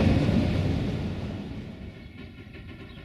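A passing train rushes loudly close by and quickly fades.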